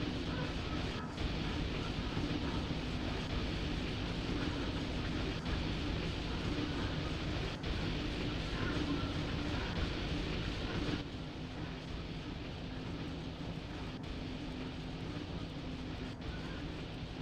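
An electric locomotive hums and rumbles steadily as it runs along the track.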